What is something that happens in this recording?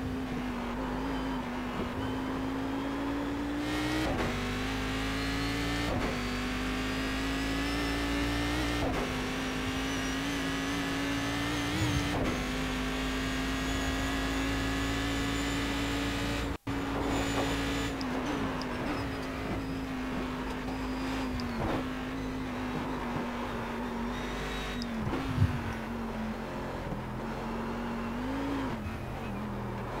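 A racing car engine roars steadily, rising in pitch and dropping briefly with each gear change.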